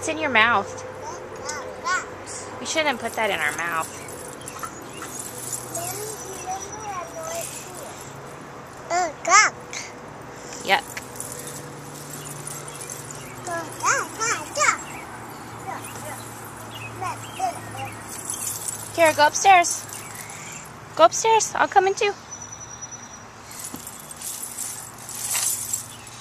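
A toddler girl babbles and speaks a few words close by.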